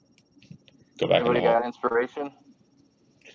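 A man speaks briefly with animation over an online call.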